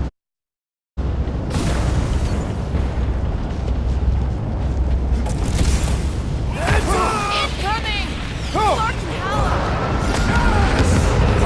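Explosions rumble and boom in a battle.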